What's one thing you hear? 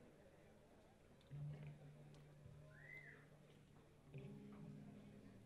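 An electric guitar plays a few short notes through an amplifier.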